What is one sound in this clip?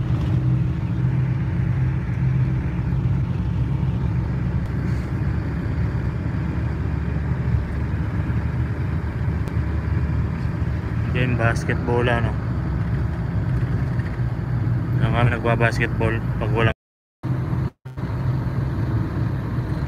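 A vehicle's engine hums steadily as it drives along a road.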